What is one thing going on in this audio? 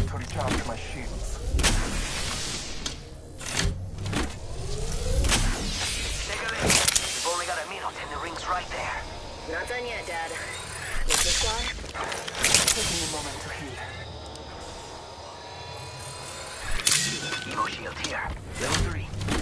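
An energy shield charges with a rising electric whir.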